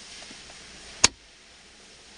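A plastic part clicks sharply once.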